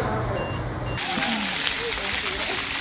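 Water jets of a fountain splash onto paving outdoors.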